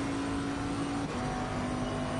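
A racing car engine shifts up a gear, its pitch dropping briefly.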